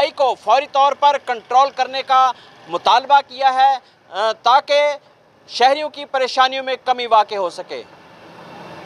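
A man speaks into a microphone with animation, close by.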